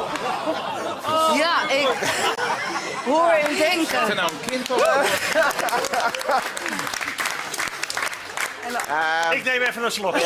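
Several men laugh loudly close by.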